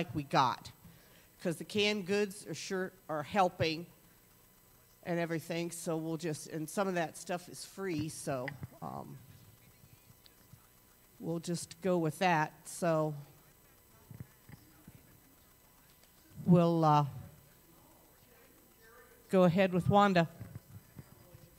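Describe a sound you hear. An elderly woman speaks calmly through a microphone, with pauses, in an echoing room.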